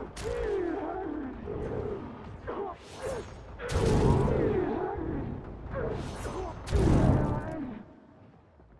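Guns fire in loud bursts with booming blasts.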